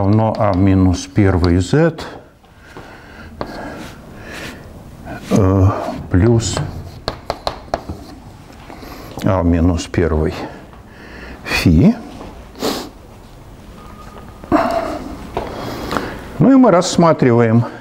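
An elderly man lectures calmly through a microphone in an echoing hall.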